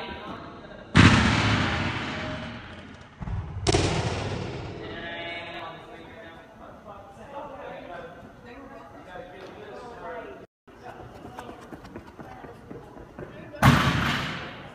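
A gymnast lands on a padded mat with a thud.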